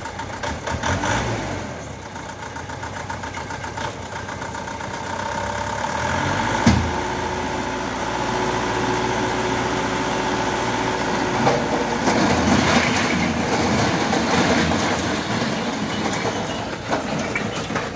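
A truck engine idles and rumbles close by.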